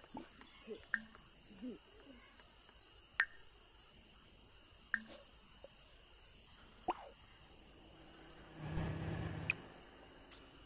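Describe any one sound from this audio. Short soft clicks sound now and then.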